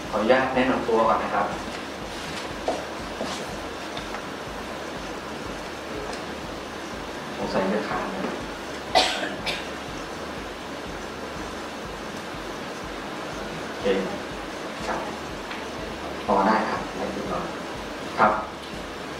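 A man speaks briefly through a microphone, with pauses.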